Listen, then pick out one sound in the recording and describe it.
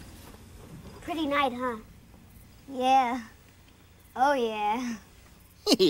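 A young girl speaks in a high voice.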